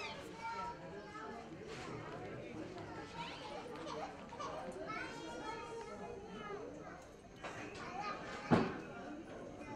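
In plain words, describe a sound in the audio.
A woman speaks softly and warmly, close by.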